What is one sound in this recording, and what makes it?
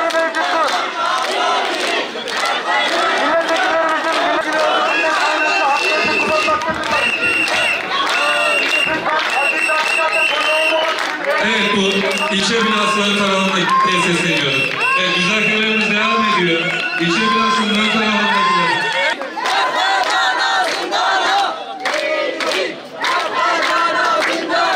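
A large crowd of men and women cheers and chants loudly outdoors.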